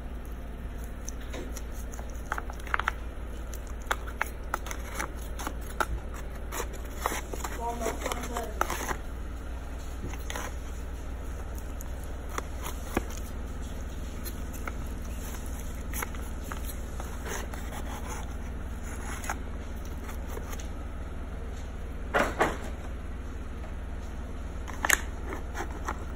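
A metal spatula scrapes and taps against a foil pan.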